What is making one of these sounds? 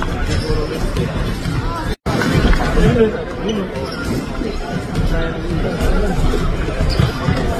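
A crowd of people chatter in a large echoing hall.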